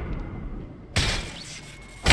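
A wet, splattering burst sounds out suddenly.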